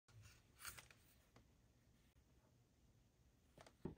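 Fingers handle and rub against a small metal hard drive casing.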